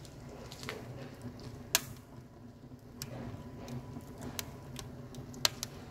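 A small wood fire crackles.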